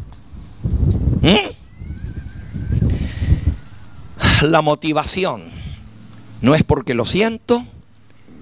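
An elderly man preaches with animation into a microphone, heard through loudspeakers outdoors.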